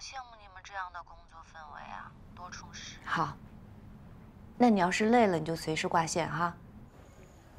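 A young woman speaks casually and cheerfully close by.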